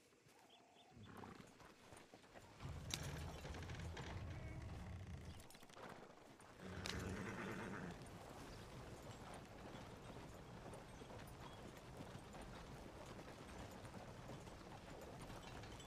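A horse-drawn wagon rolls and rattles along a dirt road.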